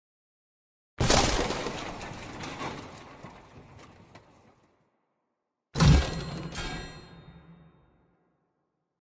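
Cardboard boxes tumble down and clatter onto a hard floor.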